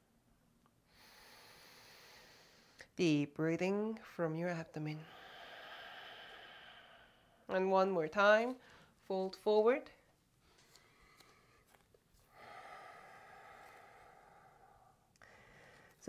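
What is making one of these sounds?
A woman breathes in and out slowly and deeply, close by.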